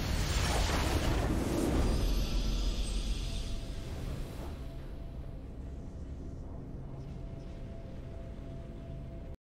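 A triumphant victory fanfare plays in a game.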